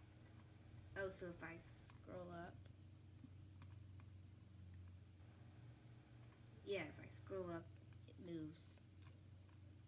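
A young girl speaks calmly into a microphone, close by.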